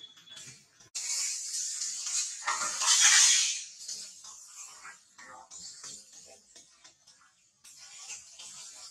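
A baby monkey squeals and cries.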